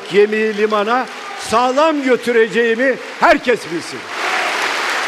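An elderly man speaks forcefully into a microphone in a large hall.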